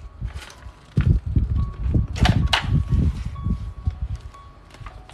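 Paper rustles as a book page is turned.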